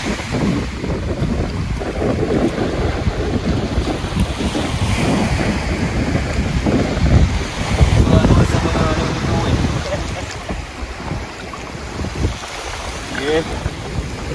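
Shallow water splashes around a man's legs as he wades.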